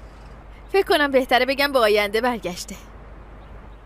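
A young woman speaks upset and pleading, close by.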